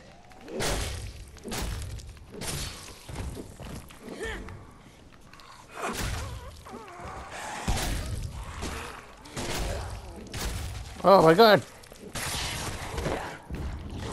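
Heavy blows thud into flesh.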